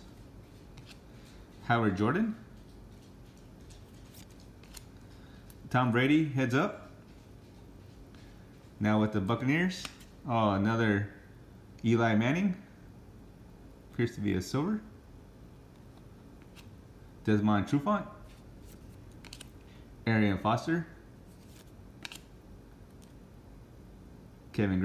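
Cardboard cards slide and rustle softly as they are shuffled by hand.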